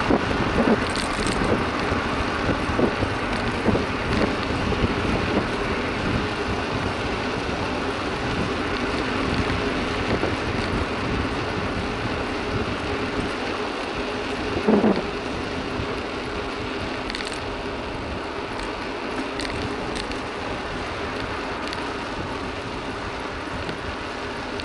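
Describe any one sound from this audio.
Tyres roll steadily on asphalt.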